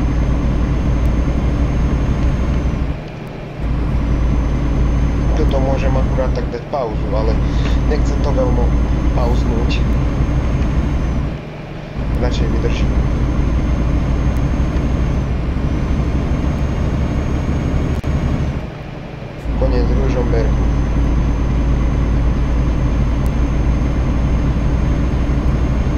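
A truck engine hums low and steady, dropping briefly between gear shifts.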